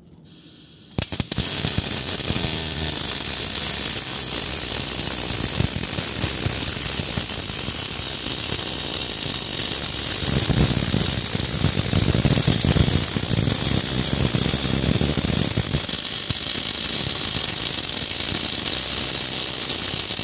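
A welding arc crackles and sizzles loudly and steadily.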